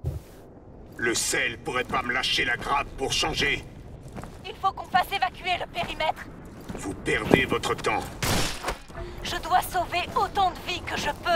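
A young man speaks into a headset microphone.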